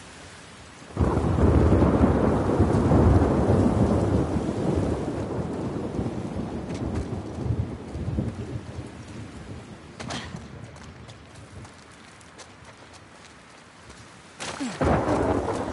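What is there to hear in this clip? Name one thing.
Heavy rain pours outside.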